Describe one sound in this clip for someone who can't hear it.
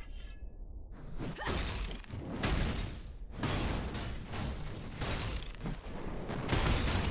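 Game sword strikes and magic blasts crash repeatedly.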